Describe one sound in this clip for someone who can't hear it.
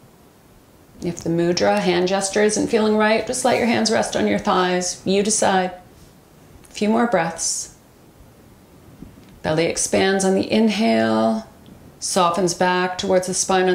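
A woman speaks calmly and softly into a close microphone.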